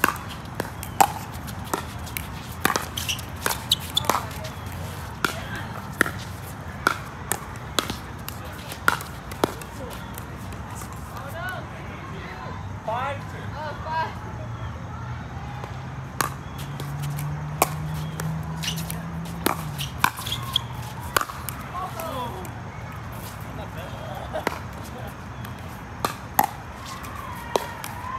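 Paddles smack a plastic ball back and forth in a rally.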